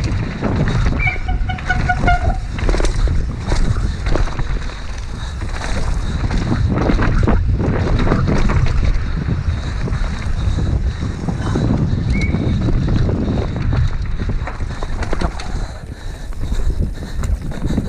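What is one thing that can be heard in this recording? Bike tyres rumble and skid over a rough dirt trail.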